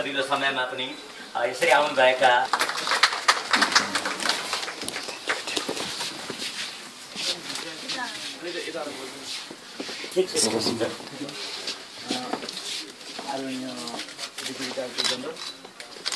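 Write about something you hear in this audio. A crowd of people murmurs and talks quietly.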